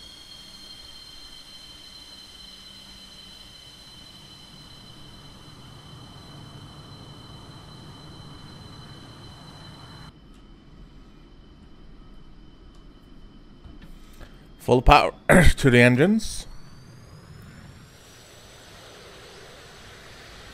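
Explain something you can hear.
A jet engine whines steadily, then rises in pitch as it speeds up.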